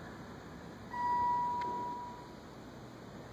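An elevator chime dings once.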